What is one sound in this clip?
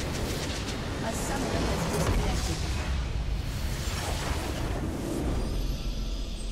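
Magic blasts crash and roar in a fierce battle.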